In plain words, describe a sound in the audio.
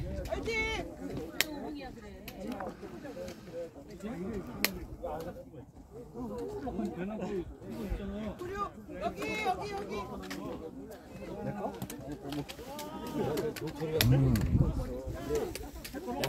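Men and women chat casually nearby outdoors.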